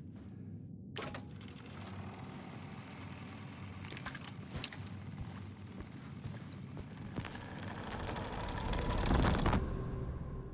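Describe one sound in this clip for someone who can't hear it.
A film projector whirs and clatters steadily.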